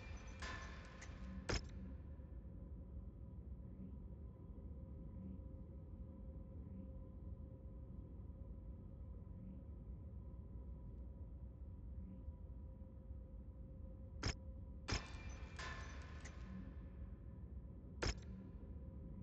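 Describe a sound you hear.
Game menu clicks and chimes sound sharply now and then.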